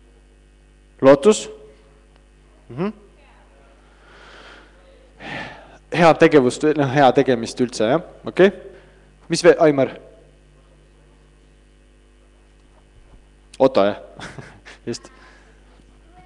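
A man speaks into a microphone in short bursts with pauses, heard through loudspeakers in an echoing hall.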